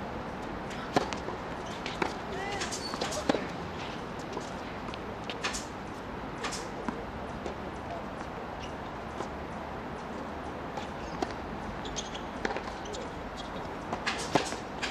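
A tennis racket hits a ball with sharp pops, back and forth.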